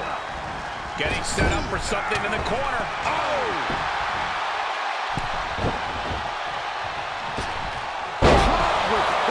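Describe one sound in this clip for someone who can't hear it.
A body slams heavily onto a wrestling ring mat.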